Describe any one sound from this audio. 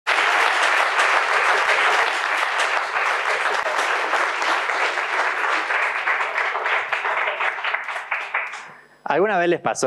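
An audience applauds and then fades away.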